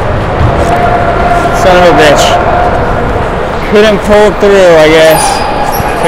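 Skate blades scrape across the ice in a large echoing rink.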